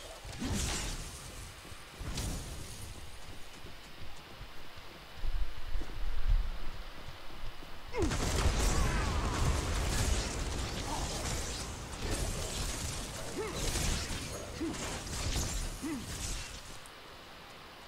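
Gunfire and energy blasts crackle and boom in a fast fight.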